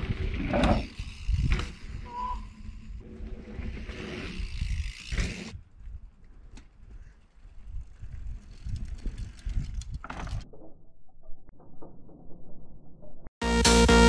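Bicycle tyres crunch over dry dirt.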